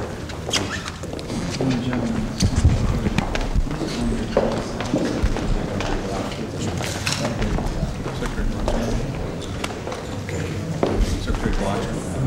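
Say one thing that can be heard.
Men talk quietly in a murmur of voices nearby.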